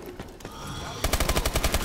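An automatic rifle fires a rapid burst.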